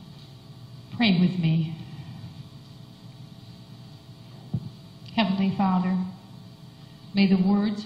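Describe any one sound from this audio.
An older woman speaks into a microphone in a small echoing room.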